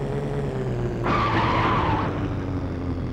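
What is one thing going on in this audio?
Tyres skid and scrape across rough dirt.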